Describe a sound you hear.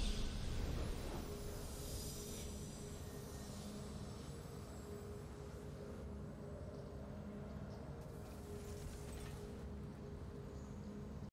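A calm game victory tune plays softly.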